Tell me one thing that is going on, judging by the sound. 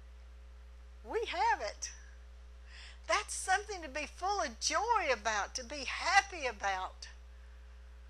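A middle-aged woman speaks with animation into a microphone.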